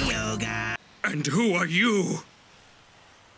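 A young girl speaks in surprise.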